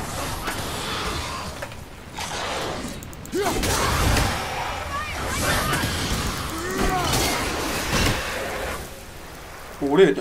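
Jets of fire roar and crackle.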